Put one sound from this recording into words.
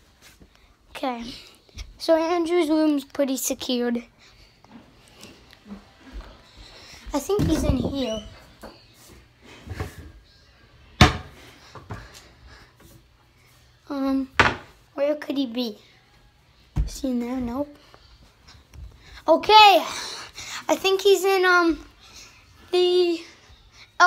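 A young boy talks close to the microphone with animation, in short bursts.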